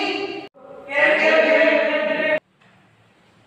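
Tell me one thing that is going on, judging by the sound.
A teenage boy speaks nearby.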